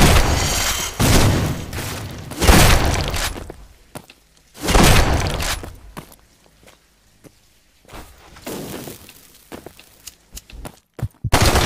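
Electric zaps crackle and buzz.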